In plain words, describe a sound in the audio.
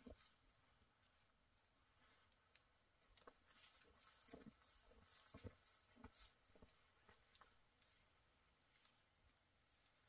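Footsteps crunch in snow close by.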